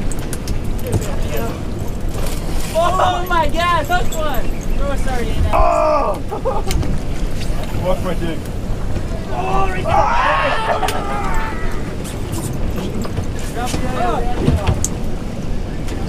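Men shout excitedly nearby.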